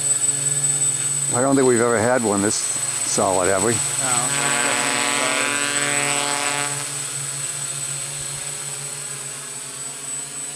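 A drone's rotors buzz steadily overhead, their pitch rising and falling as it moves.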